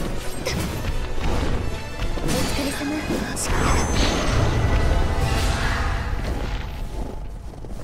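Heavy blows and crashes ring out in a fight.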